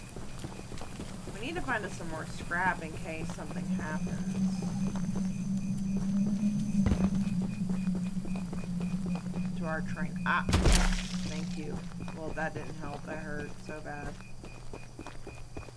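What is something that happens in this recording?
Footsteps crunch on a dirt and gravel path.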